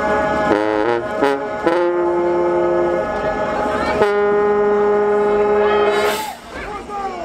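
A marching band's brass plays loud held chords outdoors.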